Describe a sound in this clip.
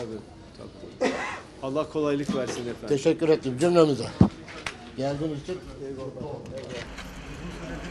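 An elderly man talks with animation close by.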